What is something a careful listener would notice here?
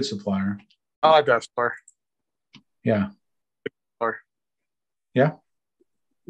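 A man speaks in short phrases over an online call.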